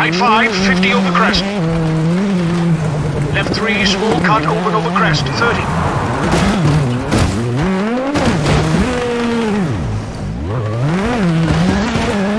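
Gravel sprays and crunches under skidding tyres.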